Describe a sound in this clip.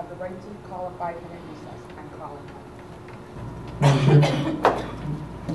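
A man speaks calmly through a microphone in a room with some echo.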